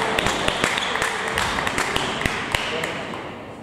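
Ping-pong balls click sharply against paddles and a table in an echoing hall.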